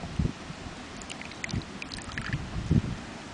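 Liquid pours and trickles from a cup into another cup.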